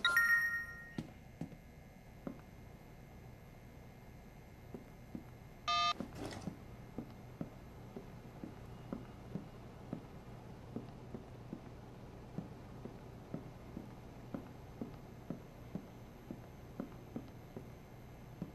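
Footsteps tap on a wooden floor at a steady walking pace.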